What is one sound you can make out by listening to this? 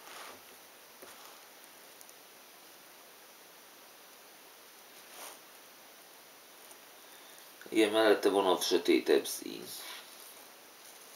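Jigsaw puzzle pieces click and rustle softly on a table.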